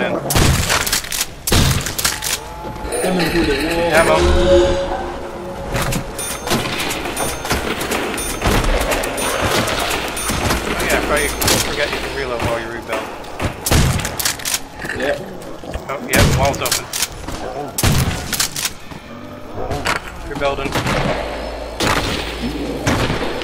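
Shotgun blasts boom loudly, one at a time.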